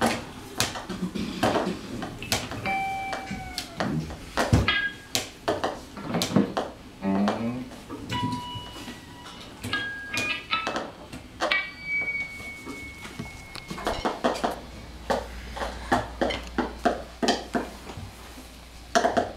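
A man makes sharp clicking and tapping sounds.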